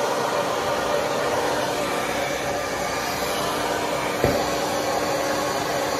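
A hair dryer blows with a steady whir.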